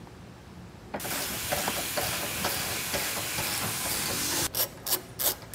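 A power wrench whirs loudly in a steady burst.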